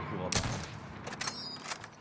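A rifle fires loud single shots.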